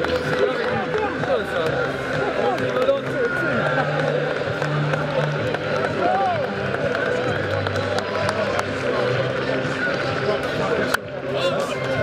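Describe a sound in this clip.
A crowd of men talk and call out over each other outdoors.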